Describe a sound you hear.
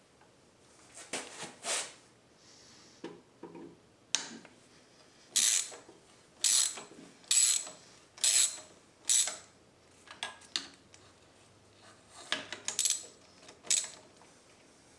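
A wrench clicks and clinks against metal engine parts.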